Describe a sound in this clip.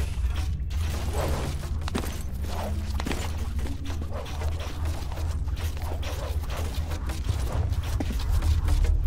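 Hands grab onto a stone ledge with soft thuds.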